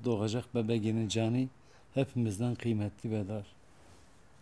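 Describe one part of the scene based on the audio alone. A man speaks softly and tearfully up close.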